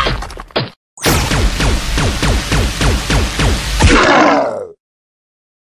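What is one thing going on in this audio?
An electric energy beam crackles and zaps in rapid bursts.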